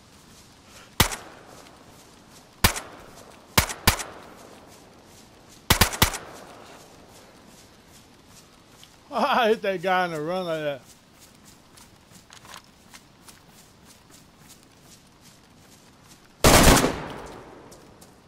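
Rifle shots ring out loudly, one at a time, echoing outdoors.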